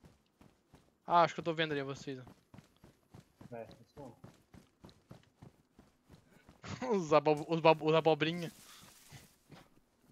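Footsteps crunch steadily on a gravel road.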